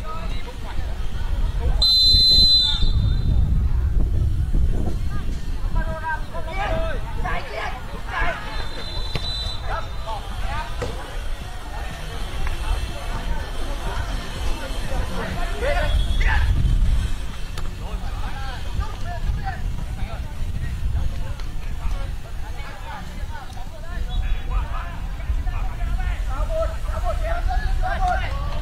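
Footballers shout to each other across an outdoor pitch.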